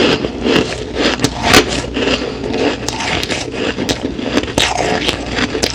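A woman crunches ice loudly, close to a microphone.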